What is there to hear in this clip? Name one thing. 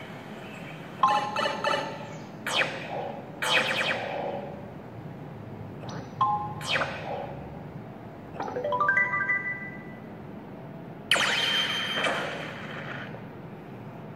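Short electronic game chimes and jingles play from a small speaker.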